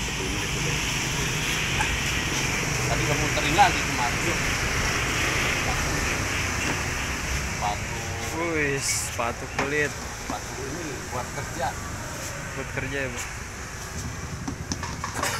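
Street traffic and motorbikes hum steadily outdoors.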